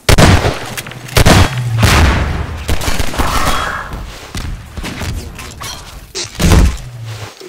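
Loud gunshots bang and echo.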